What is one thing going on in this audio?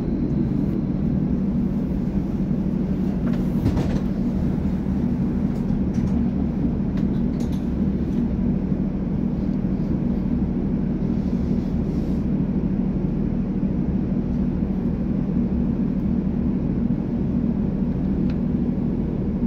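A train's engine hums steadily and low.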